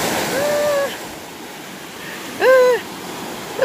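A stream rushes over rocks nearby.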